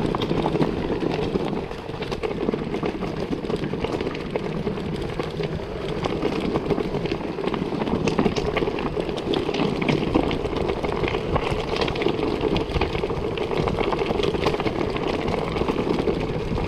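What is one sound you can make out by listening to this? Wind rushes past close by.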